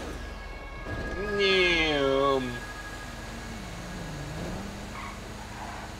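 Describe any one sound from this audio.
A siren wails and rises and falls in pitch.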